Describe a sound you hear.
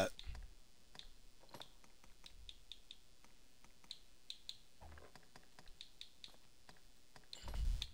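Short soft menu clicks tick as selections change.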